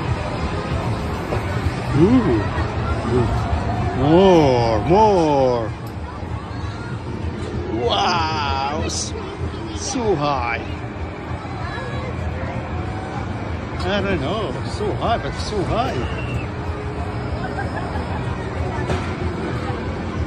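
A large crowd murmurs and chatters far below, outdoors.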